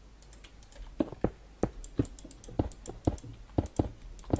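Stone blocks are set down with dull, heavy thuds.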